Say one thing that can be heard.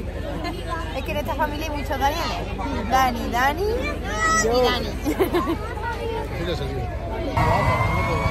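A young woman and men laugh and talk excitedly close by.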